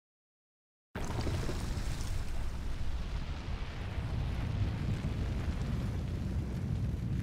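A low rumble churns as dust swirls up from the ground.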